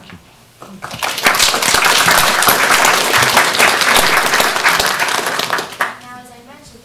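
A group of people applauds in a room.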